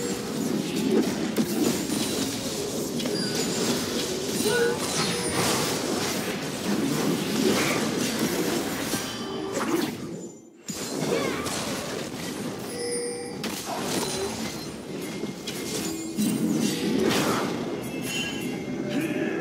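Video game spell effects crackle, whoosh and blast in a busy fight.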